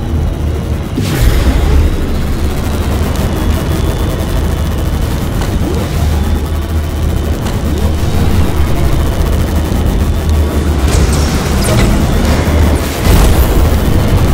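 Whooshes sweep past a speeding racing craft.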